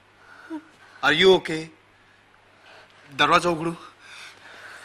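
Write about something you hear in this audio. A man speaks sharply up close.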